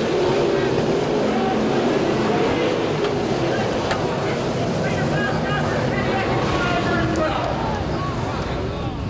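Sprint car engines roar at full throttle.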